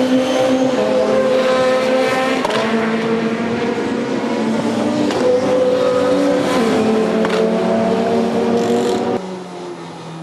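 Tyres hiss through standing water on a wet track.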